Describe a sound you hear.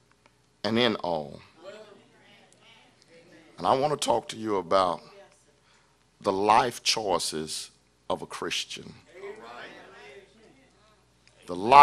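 A man preaches with feeling into a microphone, in bursts with pauses, in an echoing hall.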